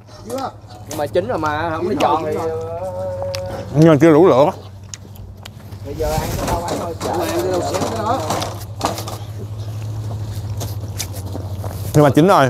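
A middle-aged man talks casually, close by.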